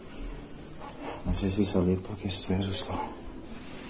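A curtain rustles as a hand pulls it aside.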